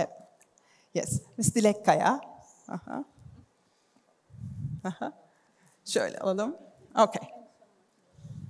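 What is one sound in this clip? A woman speaks warmly and briefly, close by.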